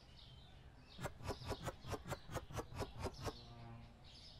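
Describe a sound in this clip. Small boxes are set down on a shelf one after another in a quick series of clicks.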